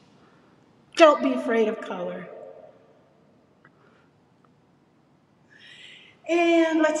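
An older woman speaks cheerfully and animatedly close to a microphone.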